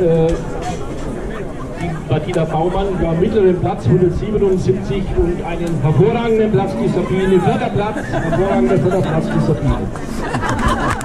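An elderly man speaks through a microphone to a crowd.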